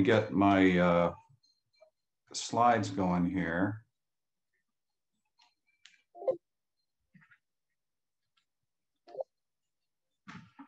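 An older man speaks calmly and slowly over an online call.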